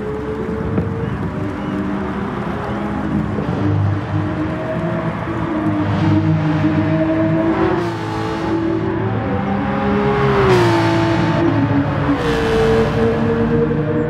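A racing car engine roars, revving up and down as gears shift.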